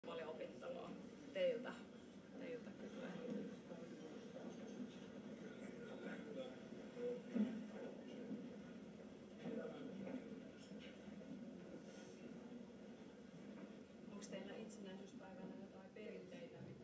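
A man speaks calmly, heard through a television speaker.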